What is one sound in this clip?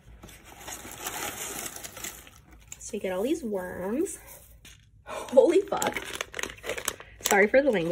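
A plastic bag of sweets crinkles.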